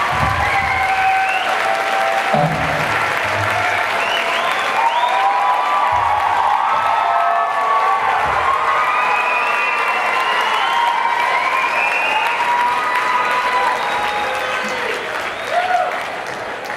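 A concert crowd whistles.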